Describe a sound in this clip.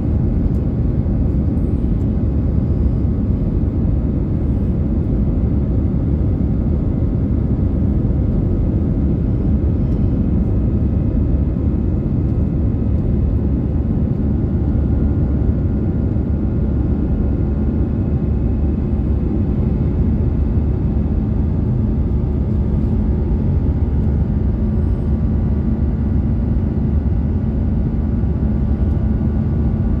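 A jet engine roars steadily with a deep, constant rumble inside an airplane cabin.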